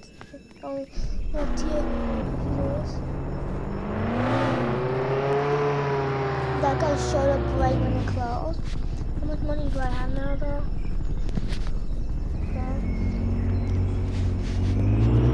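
A car engine hums and revs up and down.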